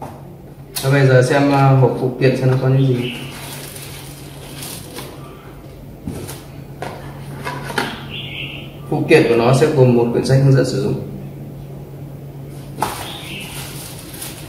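Packaging rustles and crinkles in a man's hands.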